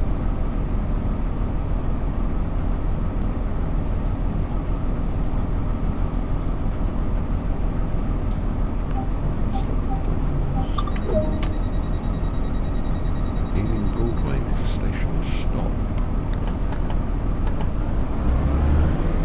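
A train's motor hums steadily at a standstill.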